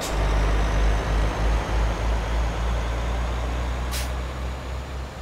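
A truck engine rumbles steadily as it drives along a road.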